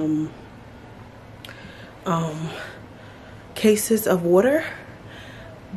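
A young woman speaks close by, calmly and with pauses.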